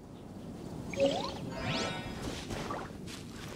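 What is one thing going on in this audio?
A sparkling magical whoosh rings out.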